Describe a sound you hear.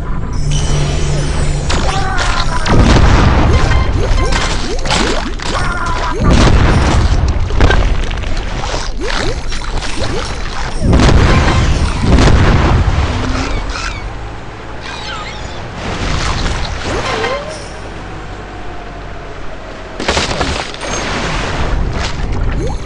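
Loud crunching and splashing game sound effects go off again and again.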